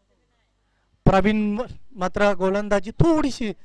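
A man speaks with animation through a microphone, close and loud.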